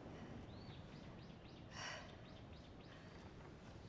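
A young woman breathes nervously nearby.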